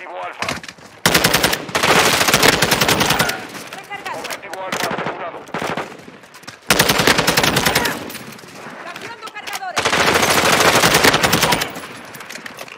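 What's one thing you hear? Automatic gunfire rattles in fast bursts.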